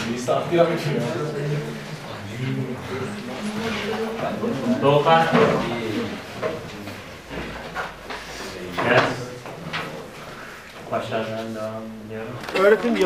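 A man speaks calmly to people close by.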